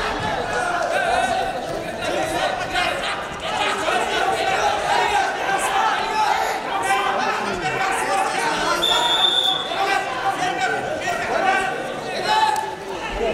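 A large crowd shouts and cheers throughout in a big echoing hall.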